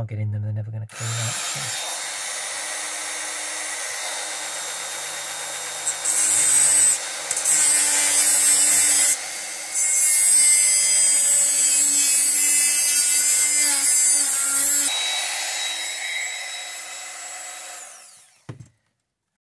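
A handheld rotary tool whines at high speed.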